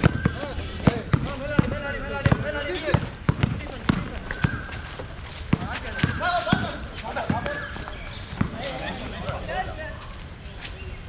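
Young men shout and call out to each other during a game.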